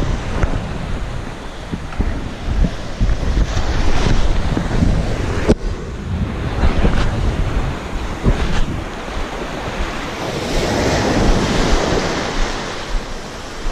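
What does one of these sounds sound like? Waves wash and break on a shore close by.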